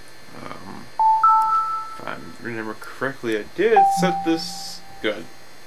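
Menu chimes beep.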